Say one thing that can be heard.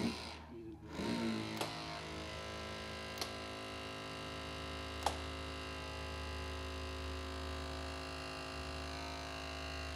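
A powered rescue tool's motor whines steadily.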